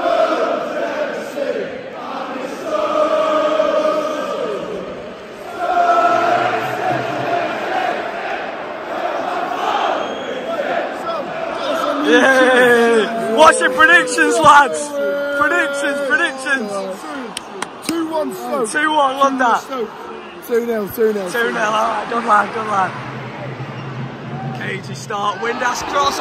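A large stadium crowd sings together loudly.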